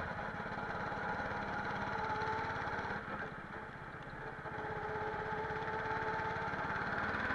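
A go-kart engine buzzes loudly close by, dipping and rising with the throttle.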